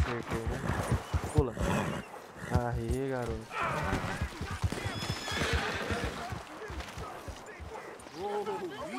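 A horse's hooves gallop with quick, steady thuds.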